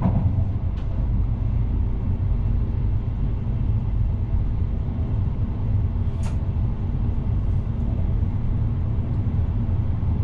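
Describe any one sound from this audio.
A train rumbles steadily along the rails with a deep, constant roar.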